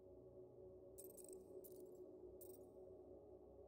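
Short bright menu clicks sound a few times.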